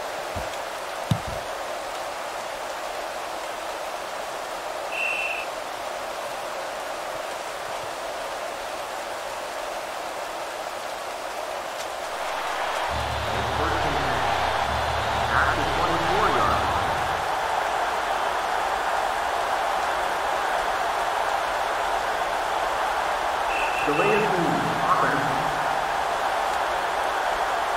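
A stadium crowd roars steadily in the distance.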